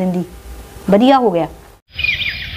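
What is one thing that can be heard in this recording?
An elderly woman speaks with feeling, close by.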